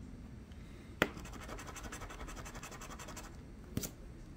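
A coin scratches briskly across a card.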